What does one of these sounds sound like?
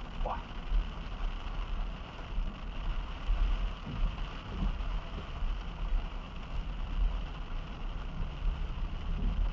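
Rain patters on a car windshield.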